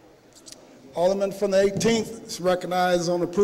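A man speaks firmly through a microphone in a large hall.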